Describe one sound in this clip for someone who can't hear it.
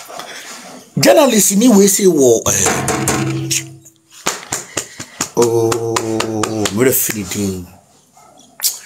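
A man sings loudly and expressively close to a microphone.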